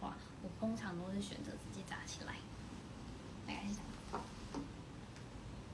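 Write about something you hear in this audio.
A young woman speaks calmly close to the microphone.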